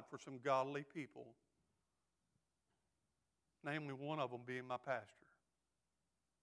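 A middle-aged man speaks with emphasis through a microphone, pausing between phrases.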